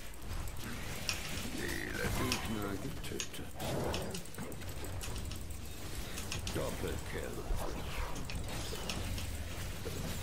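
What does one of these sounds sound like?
Game spells crackle and blast as characters fight.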